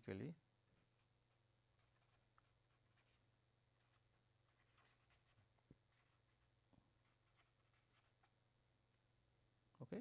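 A marker squeaks faintly as it writes on paper.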